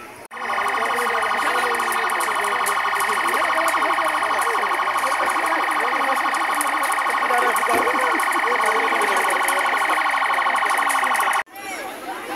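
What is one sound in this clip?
A large fire crackles and roars nearby.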